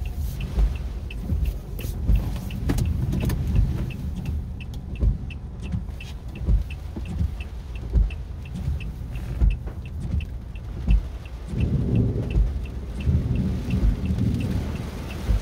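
Raindrops patter lightly on a windshield.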